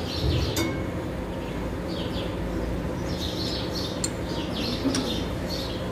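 Metal tools clink against an engine.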